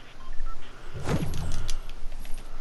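A figure lands with a heavy thud.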